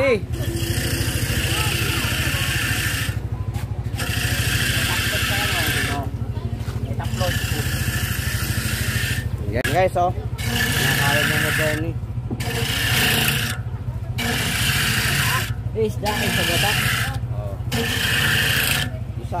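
A coconut scrapes loudly against a spinning grater in repeated bursts.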